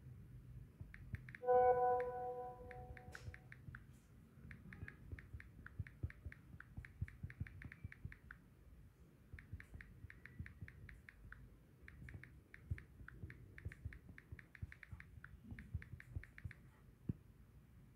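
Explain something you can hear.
Phone keyboard taps click quickly in bursts.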